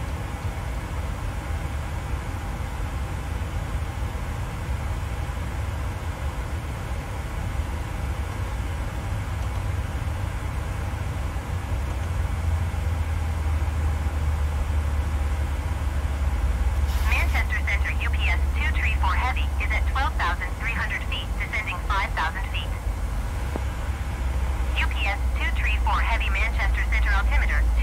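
A jet airliner's engines drone low and steadily.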